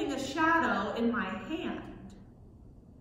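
A woman speaks calmly.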